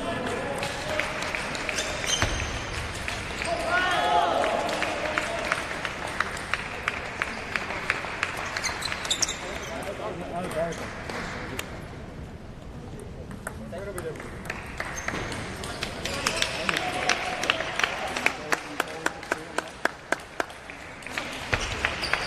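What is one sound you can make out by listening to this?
A ping-pong ball clicks quickly back and forth on a table and off paddles.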